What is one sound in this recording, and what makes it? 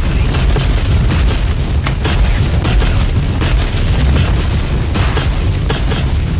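A flamethrower roars steadily.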